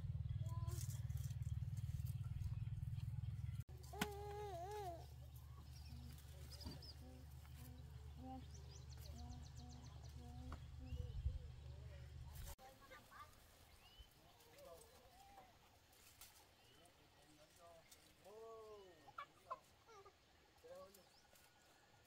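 Tomato plants rustle as fruit is picked by hand.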